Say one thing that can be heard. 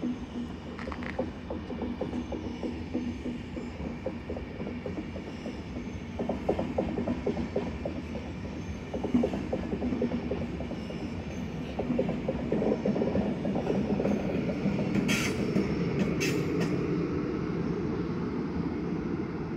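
A train rumbles slowly along the tracks nearby.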